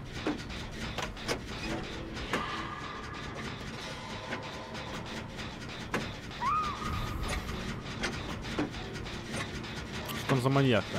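Metal parts clank and rattle in quick knocks.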